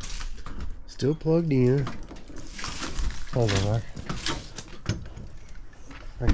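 A metal shed door scrapes and rattles as it slides open.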